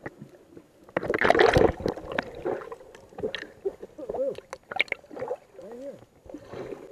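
Water splashes and gurgles around the microphone as it breaks the surface.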